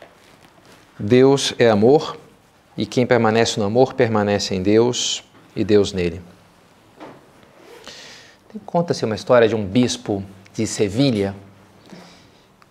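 A man speaks calmly and close by, in a room with a slight echo.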